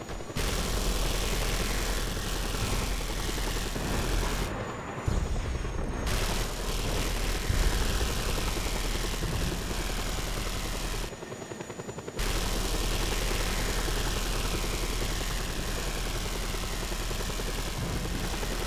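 A helicopter's rotor blades thump steadily overhead.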